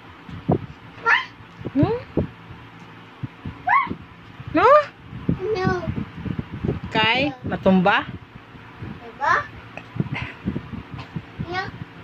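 A toddler girl babbles and squeals close by.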